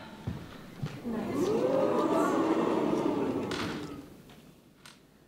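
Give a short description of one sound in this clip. Young girls laugh together.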